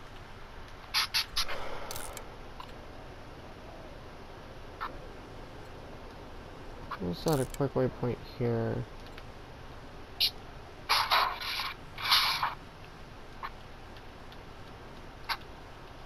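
Short, sharp clicks sound now and then.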